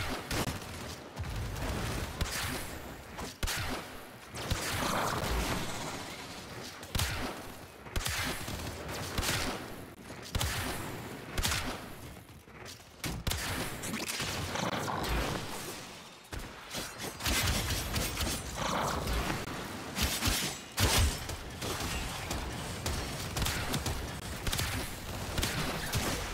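Game weapons fire and hit with sharp bursts.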